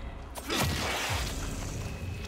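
A gunshot bangs loudly with a ringing echo.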